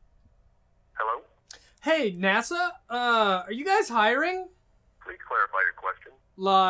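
A young man talks on a phone in a low, unsteady voice.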